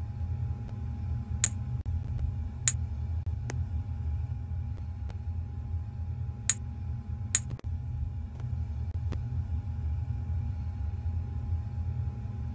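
A steady low engine hum fills an aircraft cabin.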